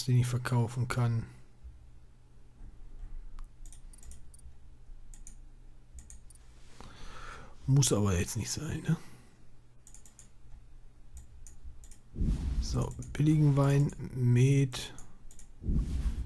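Soft interface clicks tick now and then as menu items are selected.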